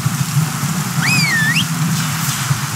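A man whistles a short call.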